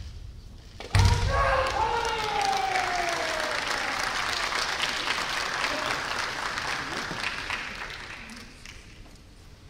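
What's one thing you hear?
A crowd applauds in a large echoing hall.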